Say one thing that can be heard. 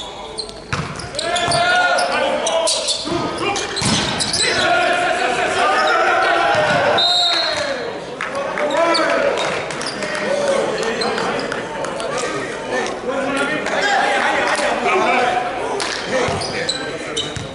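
Young men shout and call out to each other with animation.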